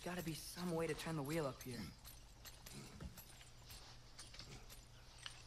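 A metal chain clinks and rattles as it is climbed.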